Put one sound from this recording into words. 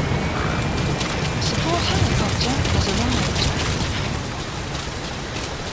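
Footsteps splash and rustle through wet undergrowth.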